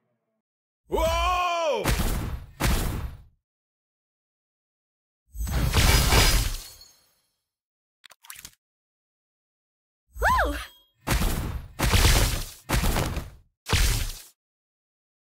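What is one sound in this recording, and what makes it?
Game magic attacks whoosh and burst in short loud blasts.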